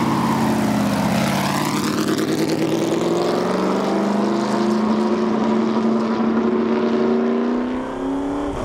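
A race car engine roars as the car speeds away, its pitch rising through the gears.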